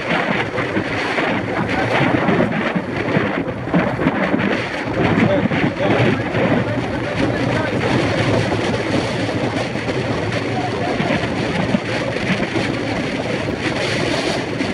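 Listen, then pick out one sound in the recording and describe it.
Wind rushes and buffets loudly against a moving car.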